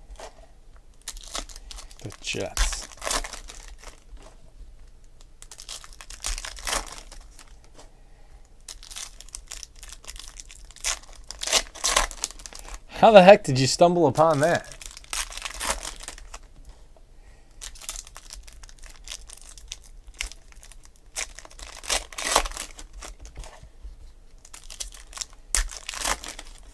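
Foil card wrappers crinkle and tear open.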